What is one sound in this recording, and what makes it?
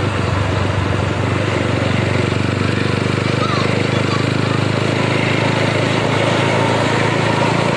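A bus engine rumbles steadily close by.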